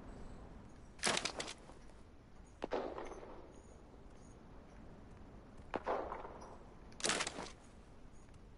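Short rustling pickup sounds come now and then.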